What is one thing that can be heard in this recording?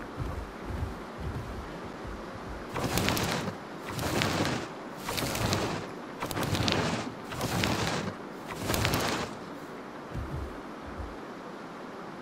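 A large creature's heavy footsteps thud on the ground.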